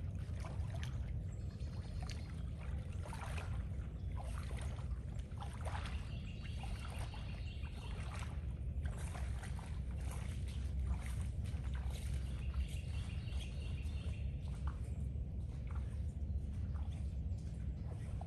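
Footsteps slosh and splash through shallow water, growing more distant.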